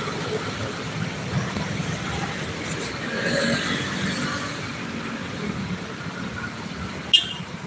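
Motorbikes ride past close by.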